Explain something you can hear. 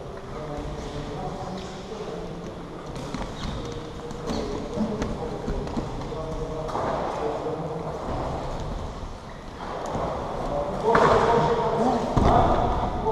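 Men grunt and breathe hard while grappling.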